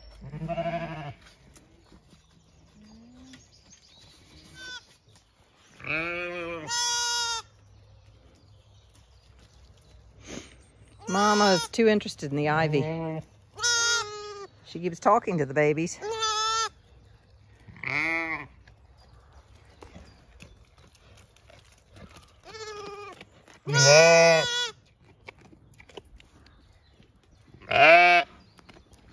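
Sheep bleat loudly and repeatedly close by.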